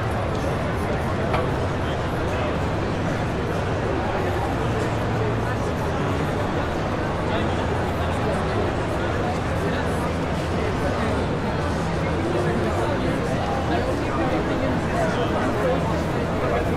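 A large crowd chatters all around in a big echoing hall.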